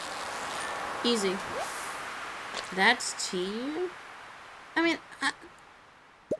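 A young woman speaks into a close microphone with animation.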